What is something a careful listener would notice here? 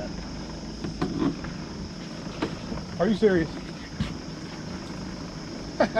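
A landing net knocks and rustles against a boat.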